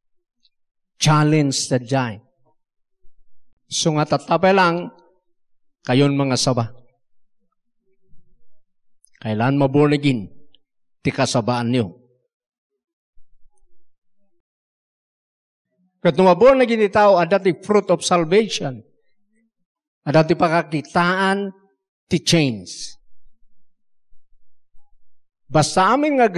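A middle-aged man speaks into a microphone in measured phrases with pauses between them.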